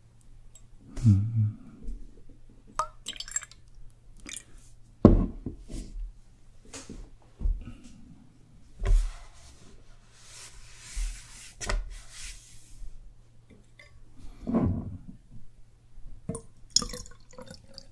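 Ceramic cups and flasks clink and knock against a wooden table.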